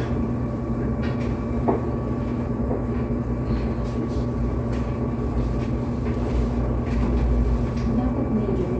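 Machines hum steadily close by.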